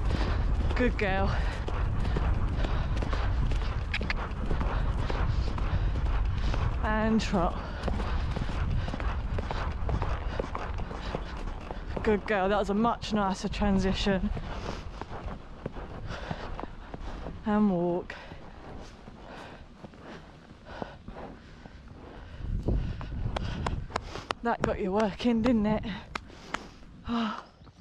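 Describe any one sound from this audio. A horse's hooves thud steadily on grass.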